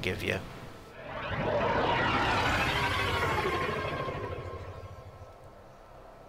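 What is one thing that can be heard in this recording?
A spaceship roars past with a rushing whoosh.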